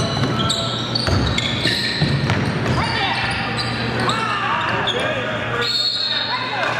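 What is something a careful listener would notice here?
A crowd of people shouts and cheers, echoing in a large hall.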